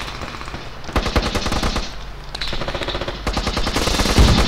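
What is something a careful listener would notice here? Footsteps crunch quickly over dry ground.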